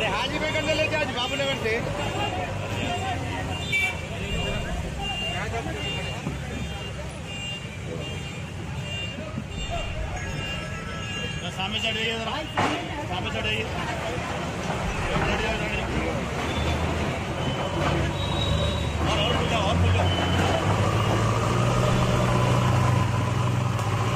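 A backhoe loader's diesel engine rumbles nearby.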